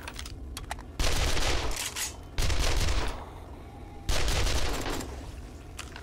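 An automatic rifle fires short, loud bursts.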